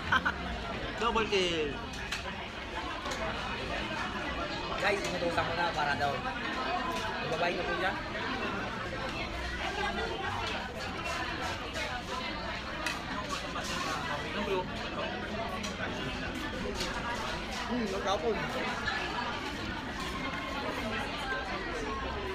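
Cutlery clinks and scrapes on a plate.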